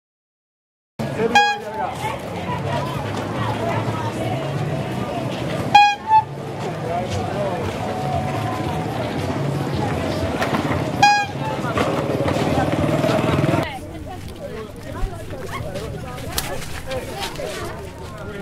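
A busy outdoor market crowd murmurs and chatters.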